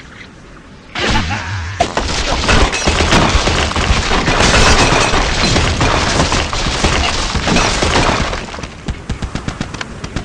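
A game's blocks crash and shatter in a long tumbling collapse.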